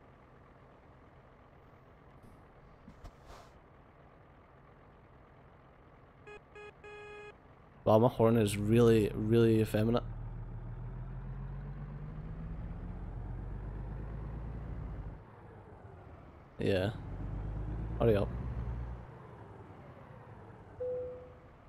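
A truck engine rumbles low and steadily as the truck rolls slowly forward.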